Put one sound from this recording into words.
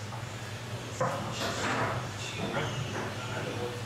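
A foosball ball clacks against the rods and table walls.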